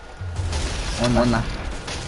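A pickaxe strikes with a loud whack.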